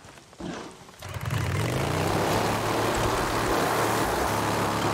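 A motorcycle engine starts and runs with a loud steady roar.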